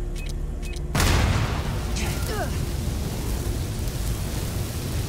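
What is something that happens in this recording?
Flames crackle and roar.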